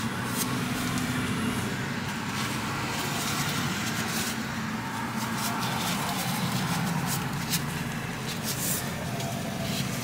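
Hands fold and roll a soft pancake with a light rustling.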